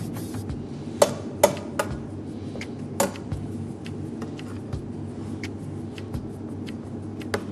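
A metal spatula scrapes and taps against rice on a platter.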